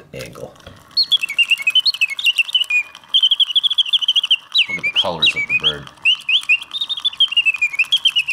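A mechanical songbird whistles and trills rapidly.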